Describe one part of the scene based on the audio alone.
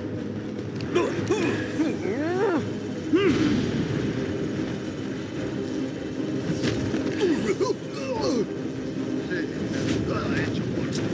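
Punches land with heavy thuds during a fight.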